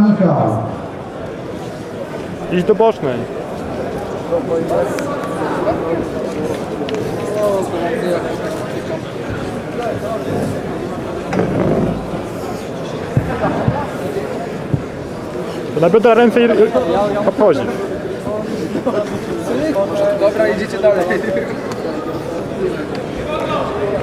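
Men shout and call out encouragement in an echoing hall.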